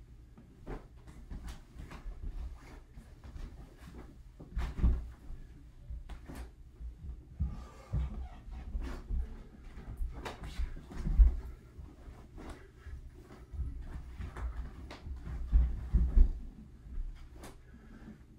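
Bare feet thump and shuffle on a wooden floor.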